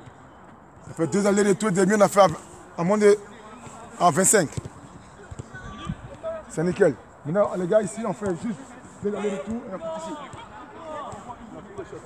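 A boy talks loudly outdoors.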